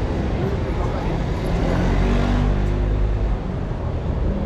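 A car engine hums low nearby, then fades away.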